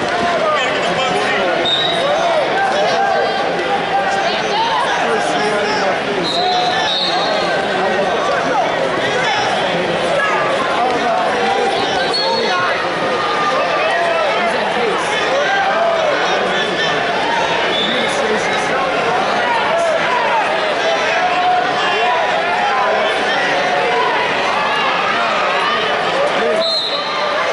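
A large crowd chatters and shouts throughout a big echoing arena.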